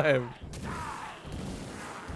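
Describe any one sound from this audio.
A blast of flame whooshes.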